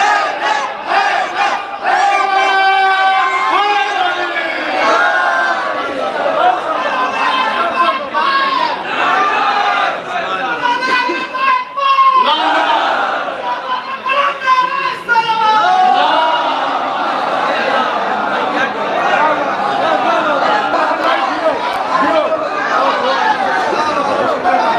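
A young man recites with animation through a loudspeaker in a large echoing hall.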